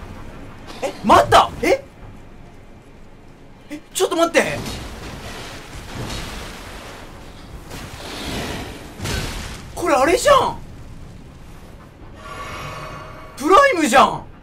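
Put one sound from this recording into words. Blades swish and clash loudly in a fight.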